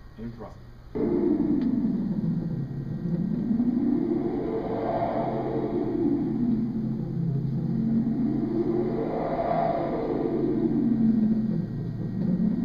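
An electronic synthesizer drones with slow, repeating sweeps up and down.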